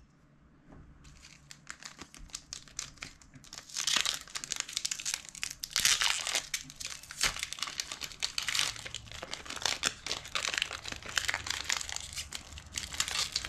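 A foil card pack crinkles and tears as hands open it.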